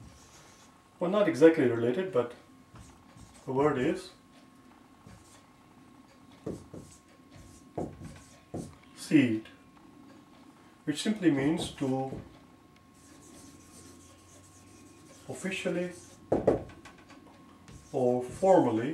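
A man speaks calmly and slowly, close by, pausing between phrases.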